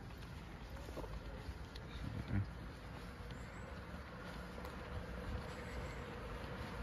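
Footsteps fall on a paved path.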